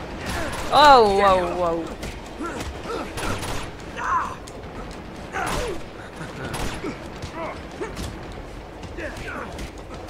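Men grunt and thud as they brawl.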